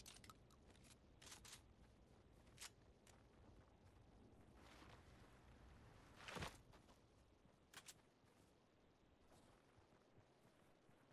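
Quick footsteps crunch on snow.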